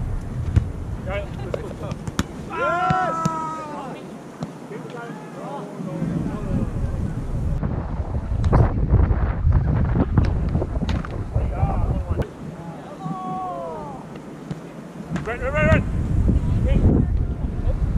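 Players shout and call out to each other at a distance.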